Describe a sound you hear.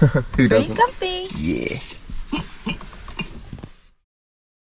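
A young woman laughs and talks close by.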